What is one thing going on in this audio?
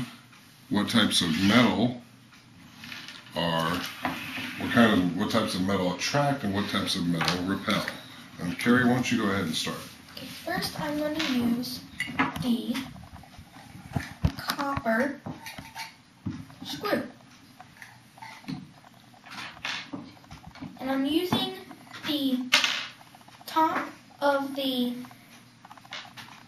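A boy speaks calmly and close by.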